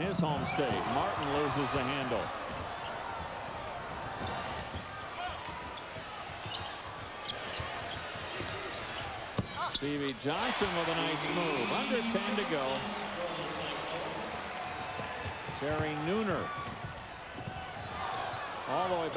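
A large indoor crowd murmurs and cheers in an echoing arena.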